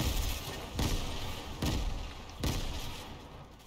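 Heavy thuds of a pickaxe striking wood sound every second or so.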